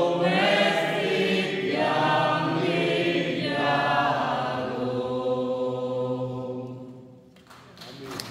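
A choir of women sings together in a resonant, echoing hall, with the final note held and fading away.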